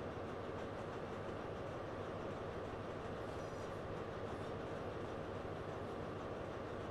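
A diesel train engine rumbles steadily as the train slowly pulls away.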